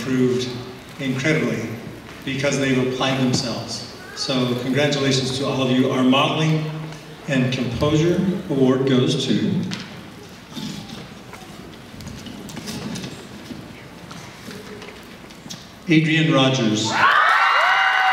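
A man speaks calmly through a microphone and loudspeakers.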